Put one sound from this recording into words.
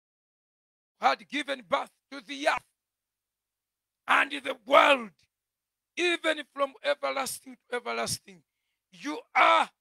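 A man preaches with animation into a microphone, in short bursts.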